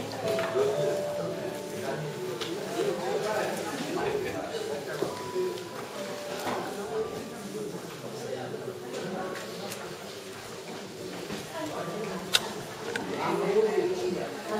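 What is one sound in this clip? Women talk quietly nearby in a room with a slight echo.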